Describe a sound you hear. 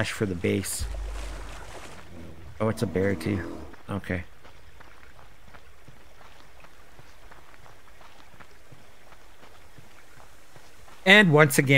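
Footsteps rustle softly through undergrowth.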